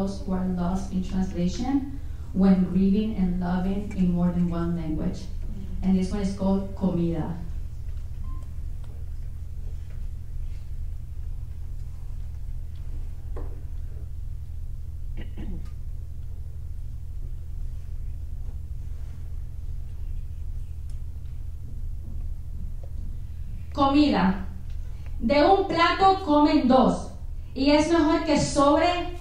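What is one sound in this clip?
A young woman sings through a microphone in a large hall.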